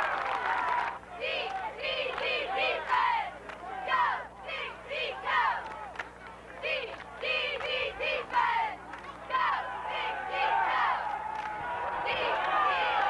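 Young men shout and call out close by.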